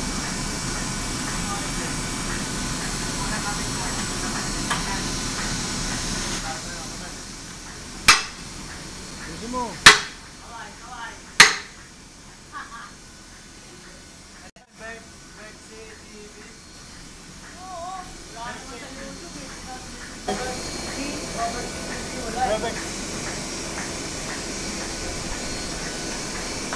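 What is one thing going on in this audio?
A printing press machine hums and rumbles steadily.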